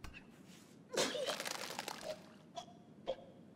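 A man retches and vomits.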